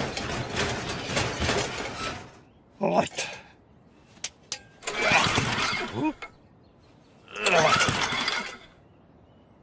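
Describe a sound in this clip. A lawnmower engine sputters in short rattling bursts.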